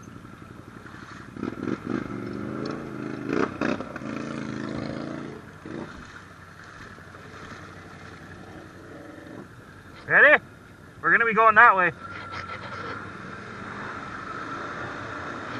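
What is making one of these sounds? An all-terrain vehicle's engine runs and revs.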